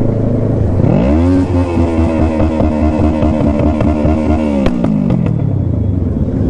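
A motorcycle engine revs up hard, holds high and then drops.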